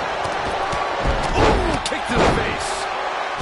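Wrestlers' bodies thud onto the ring mat.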